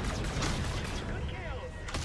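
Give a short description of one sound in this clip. A missile whooshes past.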